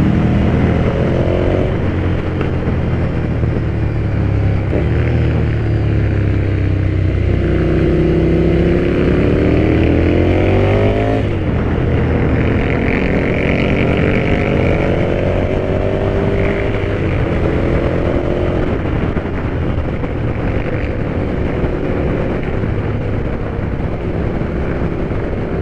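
A motorcycle engine roars close by, rising and falling in pitch as it revs up and shifts gears.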